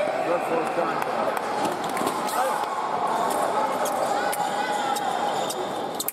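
Fencers' feet tap and squeak on the floor.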